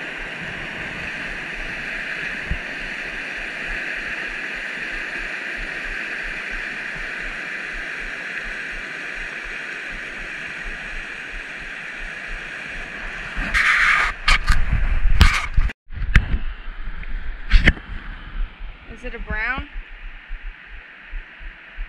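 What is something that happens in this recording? A mountain stream rushes over rocks.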